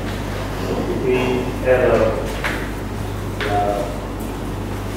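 A man lectures in a calm voice.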